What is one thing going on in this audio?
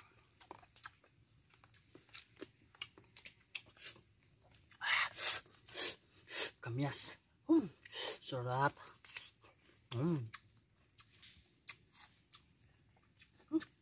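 A young man chews and slurps wetly close by.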